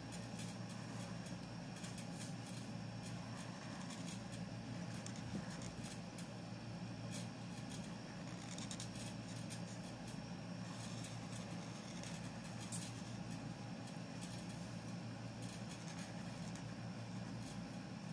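A felt-tip marker squeaks and scratches softly across paper.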